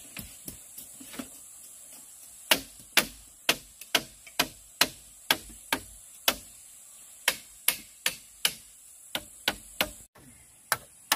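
A machete chops into bamboo with sharp, steady knocks.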